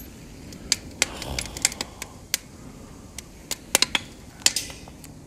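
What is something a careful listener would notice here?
A fire roars softly with a low rush of flames.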